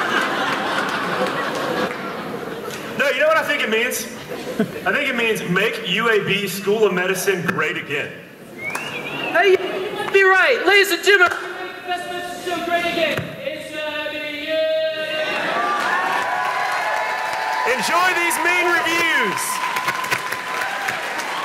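A young man talks with animation in a large echoing hall.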